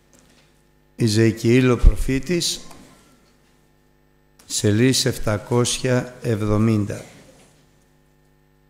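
An elderly man speaks slowly and earnestly through a microphone.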